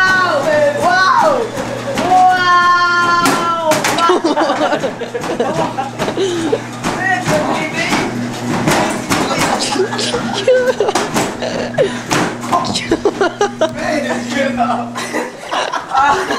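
A treadmill motor hums steadily and then stops.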